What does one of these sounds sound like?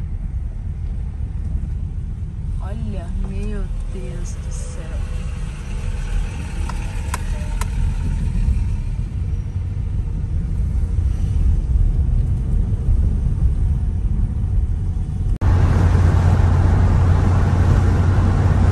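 A car engine hums steadily on a rough dirt road.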